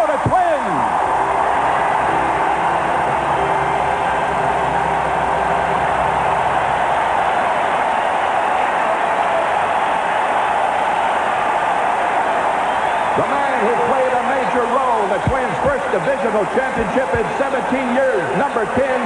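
A huge stadium crowd roars and cheers loudly.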